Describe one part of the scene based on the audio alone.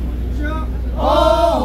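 A young man chants loudly nearby.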